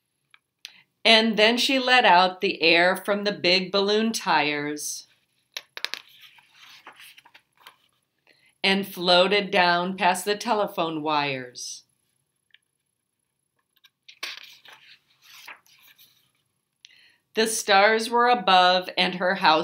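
A woman reads aloud expressively, close by, in short bursts with pauses.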